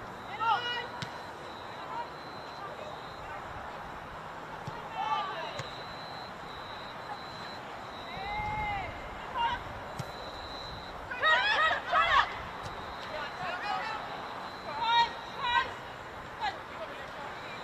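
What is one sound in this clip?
Women players shout and call out across an open field.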